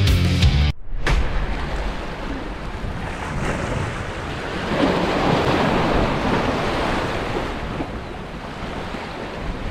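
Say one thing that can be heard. Waves splash against rocks outdoors in wind.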